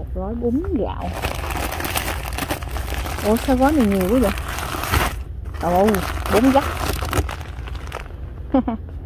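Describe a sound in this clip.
Plastic packages crinkle and rustle as they are handled.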